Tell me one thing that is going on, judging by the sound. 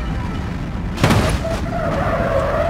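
A car crashes with a loud bang and crunch of metal.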